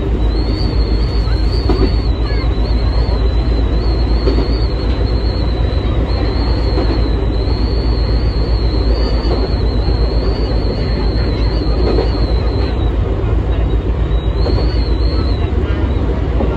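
A train's motor whines at a high, wavering pitch.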